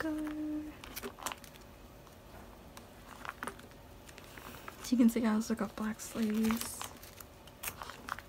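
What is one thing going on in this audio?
Album pages flip over with a soft swish.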